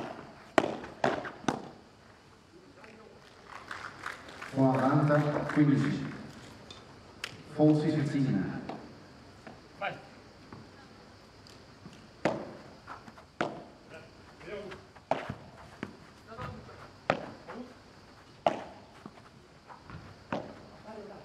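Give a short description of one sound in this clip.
A padel ball thuds against glass walls.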